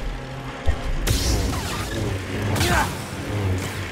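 A laser sword clashes against a blade with crackling sparks.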